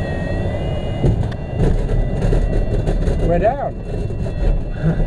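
An aircraft's wheel rumbles and bumps over rough grass on landing.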